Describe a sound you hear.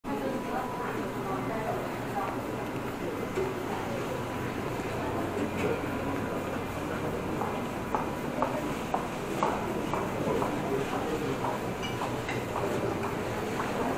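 People chatter in a murmur in an echoing hall.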